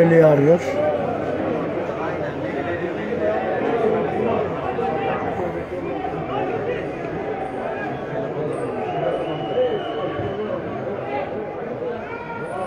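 A crowd of spectators murmurs and chatters in an open-air stadium.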